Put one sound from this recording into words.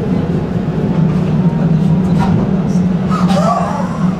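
A tram rumbles closer, growing louder.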